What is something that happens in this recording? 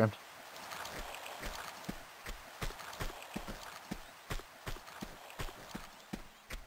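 Footsteps patter quickly on a hard stone floor.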